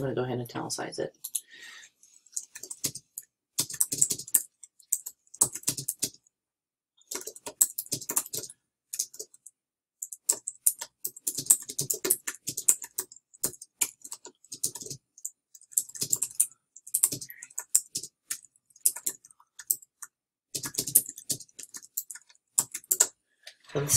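Computer keys click quickly as someone types.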